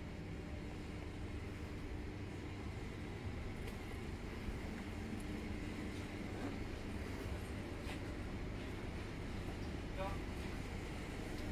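Distant shoppers murmur faintly in a large indoor space.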